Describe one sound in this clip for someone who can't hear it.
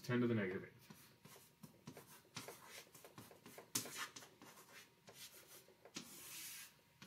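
A marker squeaks and taps as it writes on a board.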